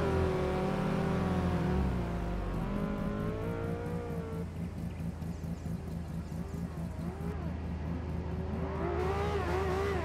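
A rotary-engine sports car idles with a choppy beat.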